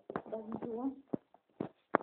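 A young person speaks briefly, close to the microphone.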